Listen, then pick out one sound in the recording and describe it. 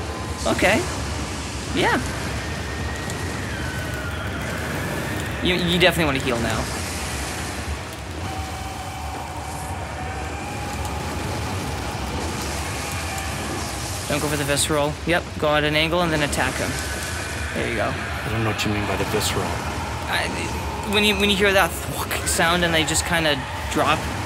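Fire roars and magic blasts boom in a video game.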